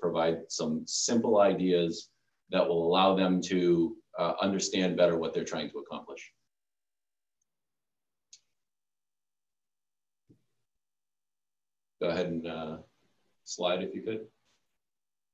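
A man speaks calmly through a microphone, as in an online talk.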